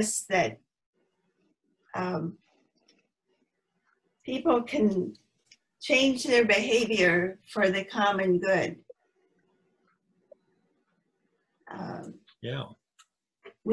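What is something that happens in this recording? A woman speaks calmly in short phrases over an online call.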